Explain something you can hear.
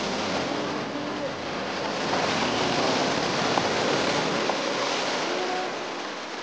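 A flooded river rushes and roars steadily.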